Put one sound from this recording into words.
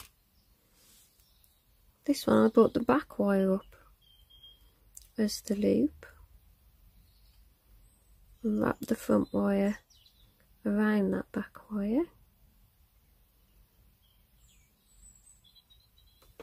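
Small metal jewellery pieces clink softly between fingers.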